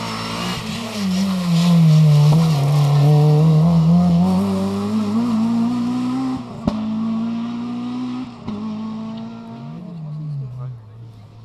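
A rally car engine roars loudly as it accelerates past and shifts gears.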